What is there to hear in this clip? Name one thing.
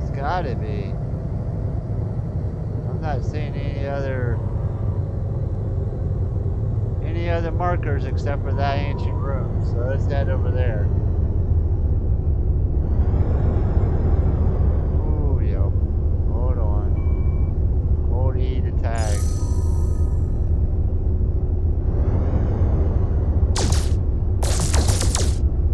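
A spaceship engine hums with a steady low rumble.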